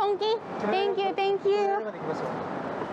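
A young woman speaks close by.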